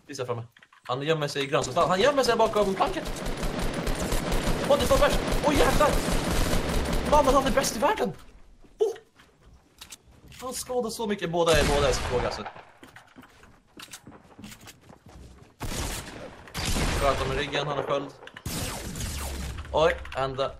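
A man talks with animation, close to a headset microphone.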